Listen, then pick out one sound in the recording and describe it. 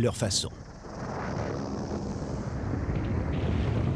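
Wind rushes loudly past a skydiver in free fall.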